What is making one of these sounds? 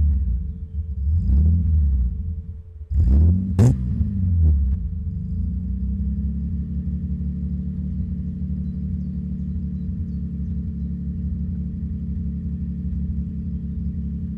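A car engine revs loudly, then settles into a steady low rumble.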